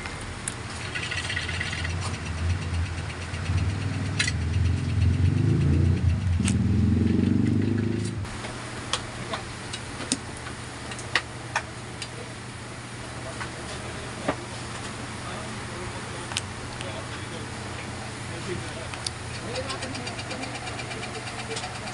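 A heavy motor housing clicks and knocks as it is handled.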